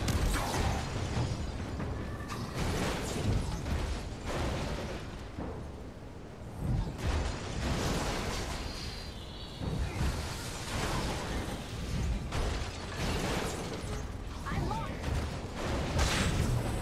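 Heavy blows land with deep thuds.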